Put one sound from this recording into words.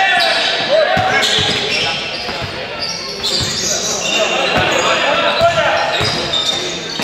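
A basketball bounces with dull thumps on the floor.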